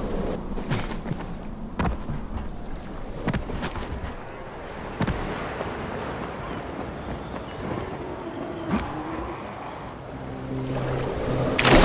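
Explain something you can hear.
Wind rushes loudly past during a fast fall.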